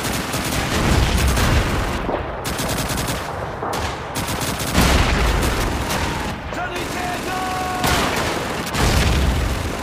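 A rifle fires single loud shots close by.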